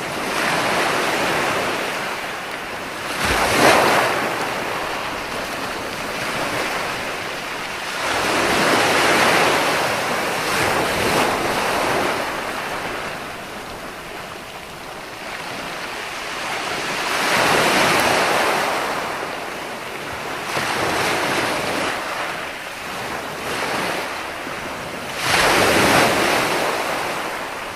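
Ocean waves break and wash up the shore in slow, swelling surges.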